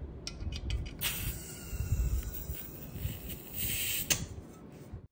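Gas hisses as it is pushed into a magazine.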